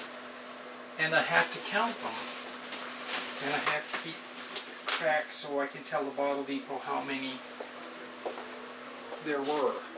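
An elderly man talks casually nearby.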